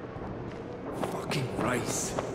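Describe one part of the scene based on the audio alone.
A fist thuds against a body in a scuffle.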